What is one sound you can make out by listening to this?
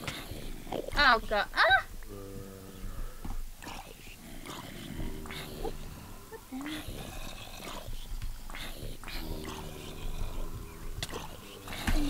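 Game zombies groan in low, drawn-out moans.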